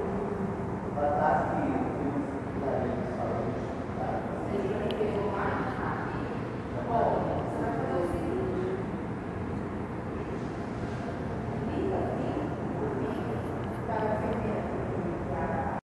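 A man talks at a distance in an echoing hall.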